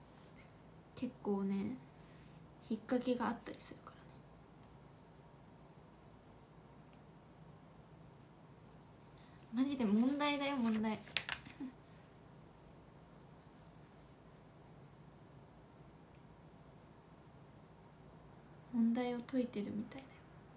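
A young woman speaks softly and cheerfully, close to a microphone.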